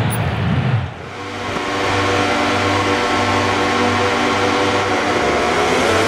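Many motorcycle engines drone together in a steady hum.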